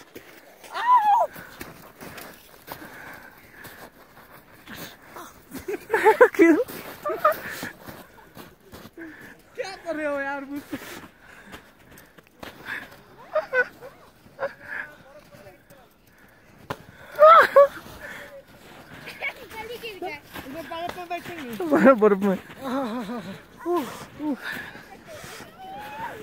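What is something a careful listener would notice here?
Several men talk and laugh loudly outdoors.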